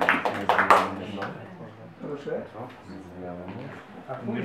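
Several adults chatter quietly in a room.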